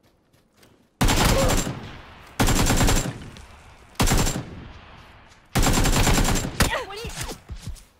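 An assault rifle fires loud bursts of gunshots.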